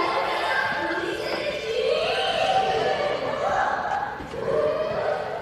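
A young woman laughs brightly nearby.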